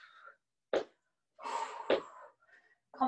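Feet thump on a wooden floor.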